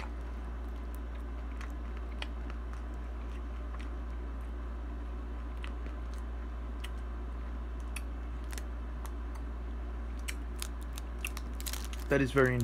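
A plastic wrapper crinkles softly in a hand.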